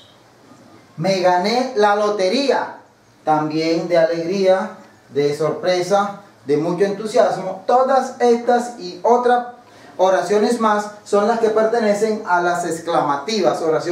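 A middle-aged man speaks clearly and steadily close by, explaining.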